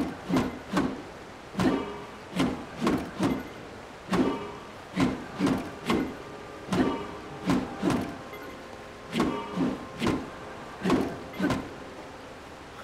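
Short gusts of wind whoosh again and again in quick bursts.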